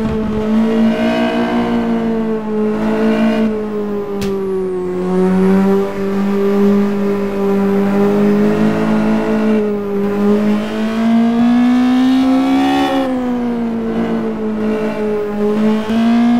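A racing car engine roars loudly, its pitch rising and falling as the car speeds up and slows down.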